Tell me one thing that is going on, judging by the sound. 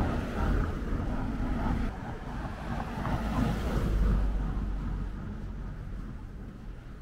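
A car passes by with a rushing whoosh that fades away.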